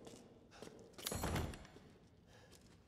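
A heavy door rattles as someone tries to open it.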